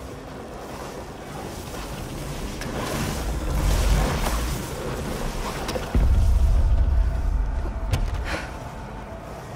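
Heavy stone blocks rumble and grind as they shift.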